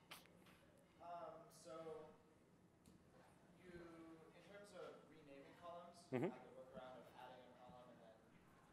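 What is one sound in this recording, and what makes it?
A man asks a question from farther off in the room.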